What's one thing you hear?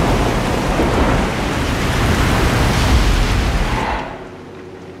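Stormy sea waves crash and roar around a boat.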